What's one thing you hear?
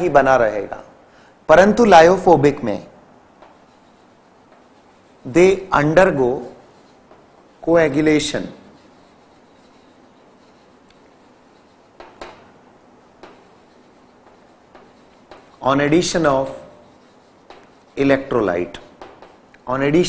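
A man speaks calmly into a microphone, lecturing in short bursts with pauses.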